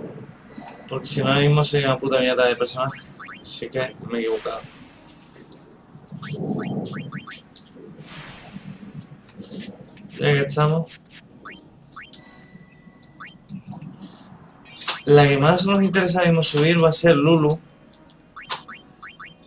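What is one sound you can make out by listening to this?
Short chiming menu sounds ring out.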